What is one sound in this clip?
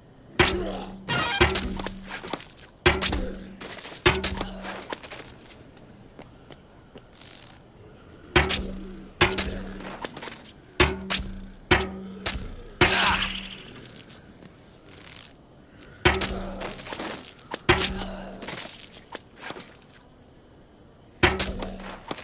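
A bowstring twangs sharply, again and again.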